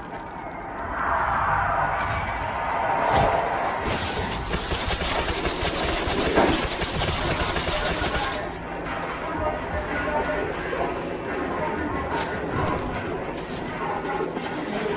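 Fiery blasts whoosh and burst.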